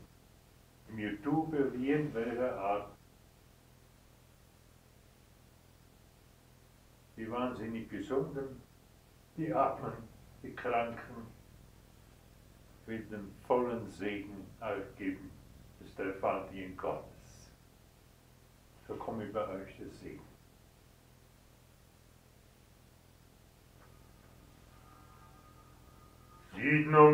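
An elderly man speaks slowly and solemnly into a microphone, with long pauses.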